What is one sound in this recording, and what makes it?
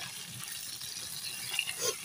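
A wooden spatula scrapes and stirs food in a metal pan.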